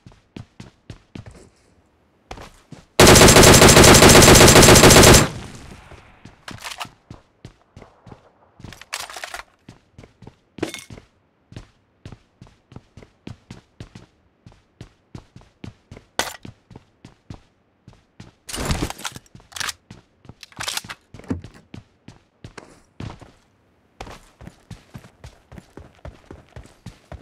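Footsteps run quickly and steadily over ground and wooden floors.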